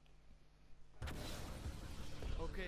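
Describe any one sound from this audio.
A burst of flames whooshes loudly.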